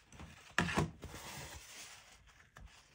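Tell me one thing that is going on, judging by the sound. A paper tissue rubs softly against a surface.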